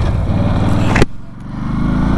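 A motorcycle engine drops in pitch during a gear change.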